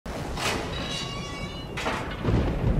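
An iron gate creaks slowly on its hinges.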